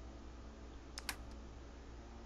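A soft electronic menu click sounds once.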